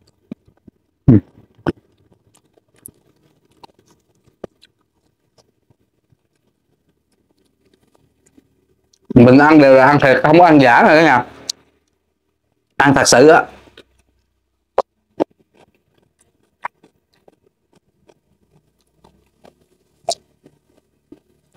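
A man crunches and chews food close to a microphone.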